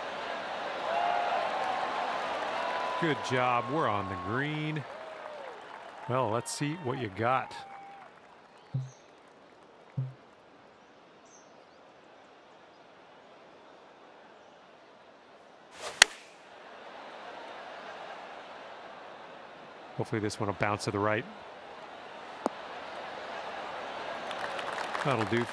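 A crowd cheers and applauds outdoors.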